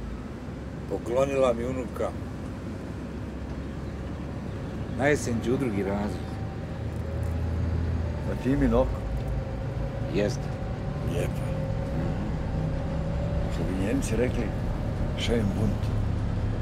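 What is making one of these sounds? A middle-aged man talks at close range.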